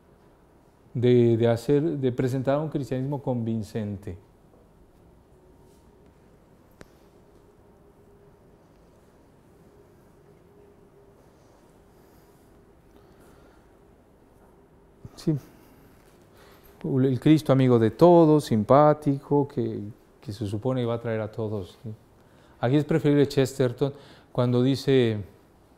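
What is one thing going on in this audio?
A man speaks calmly and clearly to a room, pausing between phrases.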